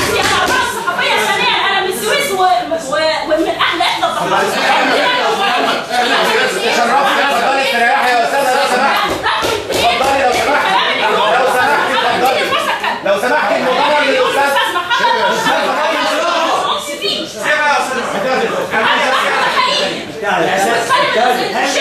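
A young woman shouts angrily close by.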